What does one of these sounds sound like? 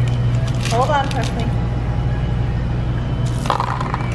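Candy pieces clatter into a cup.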